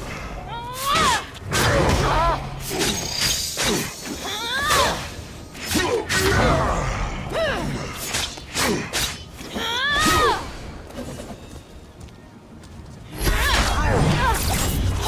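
Blows land with sharp thuds and clangs.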